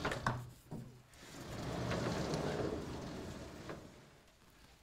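A blackboard slides along its rails.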